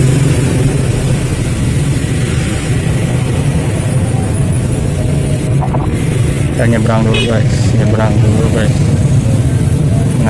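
Motor traffic rumbles along a busy street.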